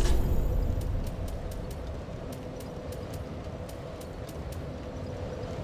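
Soft menu clicks tick quickly as items are scrolled through.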